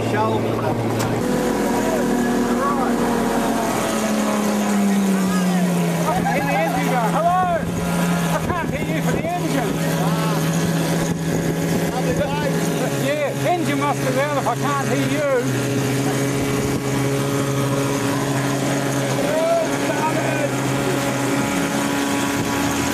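A boat motor hums steadily, changing pitch now and then.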